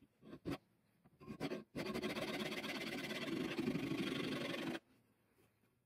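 A metal file rasps back and forth against metal.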